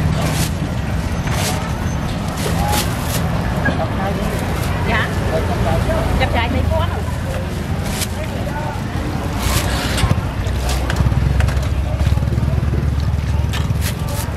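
Motorbike engines hum and rumble nearby on a busy street.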